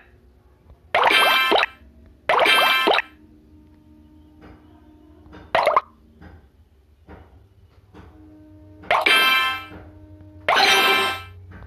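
Tiles clear with a rising jingle.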